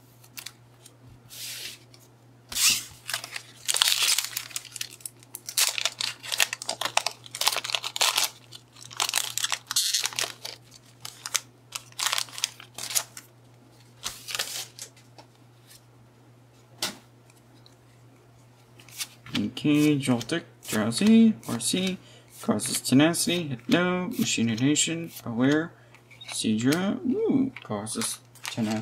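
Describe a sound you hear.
Playing cards slide and shuffle against each other.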